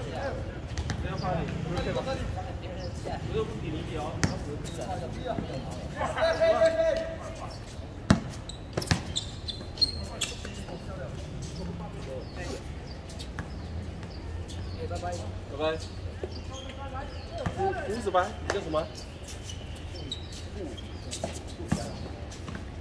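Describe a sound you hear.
A basketball bounces on a hard outdoor court.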